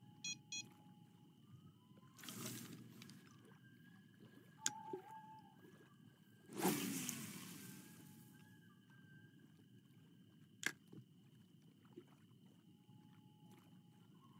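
Water laps gently.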